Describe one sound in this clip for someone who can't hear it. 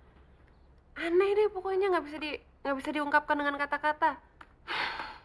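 A young woman speaks in a tearful, pleading voice close by.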